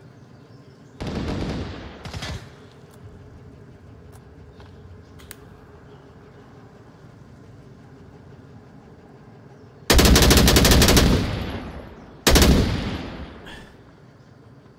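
A rifle fires rapid bursts of shots that echo away.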